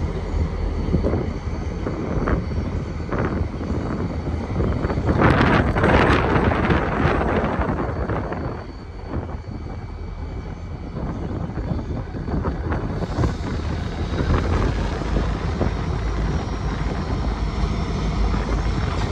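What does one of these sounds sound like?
A diesel locomotive engine rumbles steadily as it approaches slowly.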